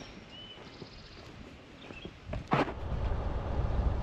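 A van drives past close by.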